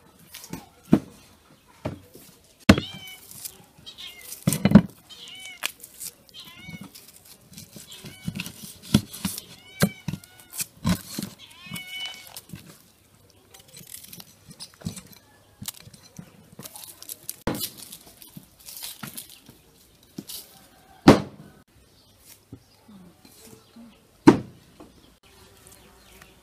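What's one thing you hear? A knife scrapes while peeling onions.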